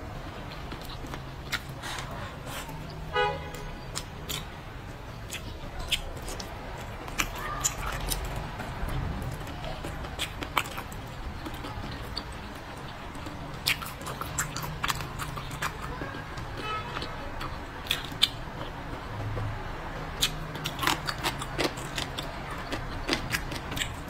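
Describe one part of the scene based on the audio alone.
Chopsticks click against a bowl.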